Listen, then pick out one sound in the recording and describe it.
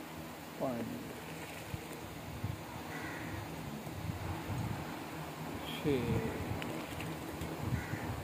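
Milk pours and splashes into a metal bucket.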